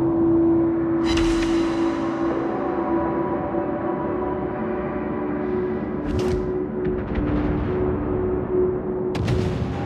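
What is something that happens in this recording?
Heavy naval guns fire in loud booming volleys.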